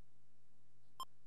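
A short electronic menu beep sounds.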